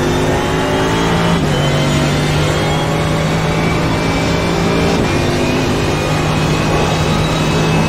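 A racing car engine roars at high speed, shifting up through the gears.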